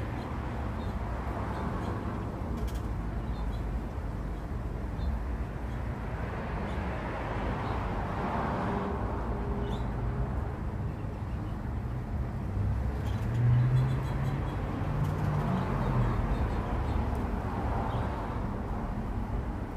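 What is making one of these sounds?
Wind rustles the leaves of nearby trees in gusts.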